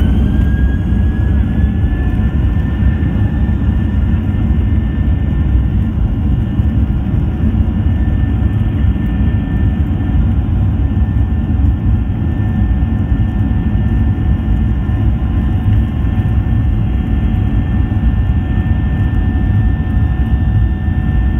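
A jet engine roars loudly with a steady high whine, heard from inside the cabin.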